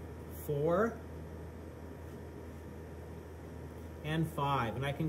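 Food is set softly onto a ceramic plate.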